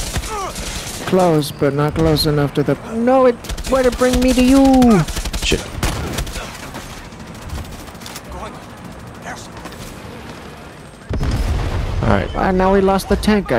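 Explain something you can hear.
A young man talks loudly and excitedly into a microphone.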